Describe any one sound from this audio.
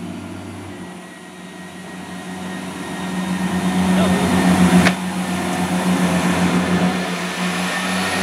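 A train pulls away and rumbles past, growing louder.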